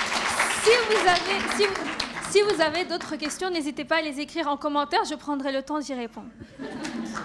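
A young woman speaks into a microphone through loudspeakers in a large echoing hall.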